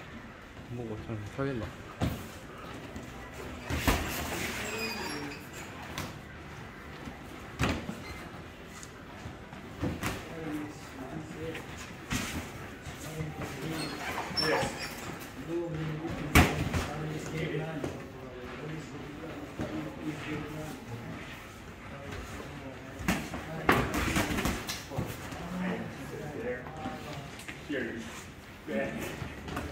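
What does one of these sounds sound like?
Sneakers shuffle and squeak on a padded ring floor.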